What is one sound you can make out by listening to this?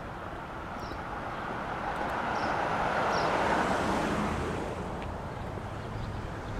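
A car drives by on the street nearby.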